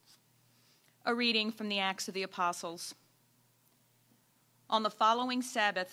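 A woman reads aloud calmly into a microphone.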